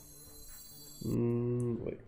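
A computer game plays a loud pitched sound effect.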